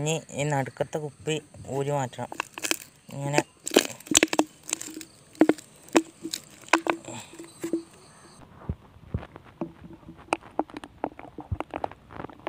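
Plastic parts knock and rattle together as they are fitted.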